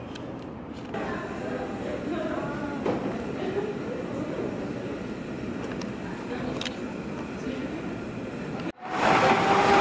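People talk quietly in a large, echoing hall.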